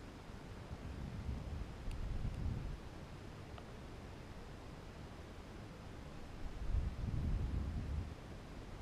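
Wind rumbles against a microphone in low gusts.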